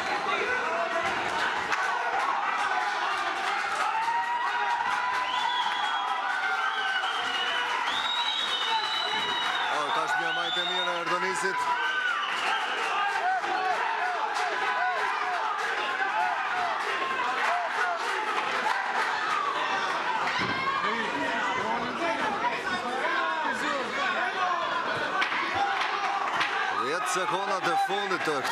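A crowd of spectators shouts and cheers loudly throughout.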